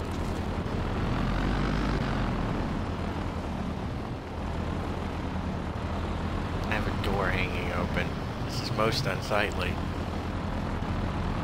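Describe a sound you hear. Tyres crunch over dirt.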